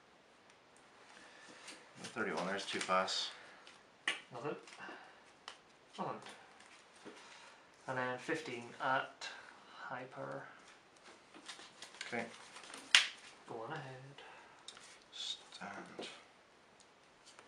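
Playing cards tap softly as they are laid down on a table.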